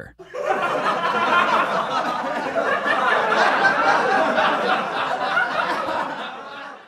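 A man laughs loudly and heartily.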